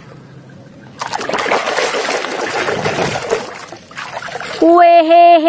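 Water splashes and sloshes in a tub.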